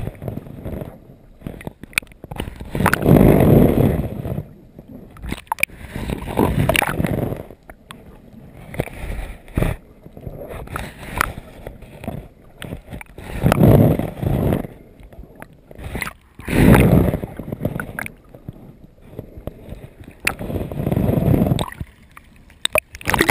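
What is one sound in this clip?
Water sloshes and rushes in repeated muffled surges.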